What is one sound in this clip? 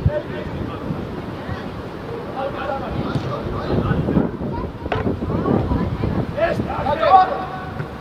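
Young players shout to each other across an open pitch.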